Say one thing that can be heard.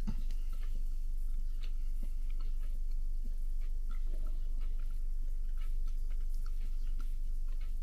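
A spoon clinks against a mug as it stirs.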